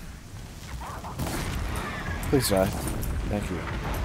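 A bowstring twangs as arrows are shot.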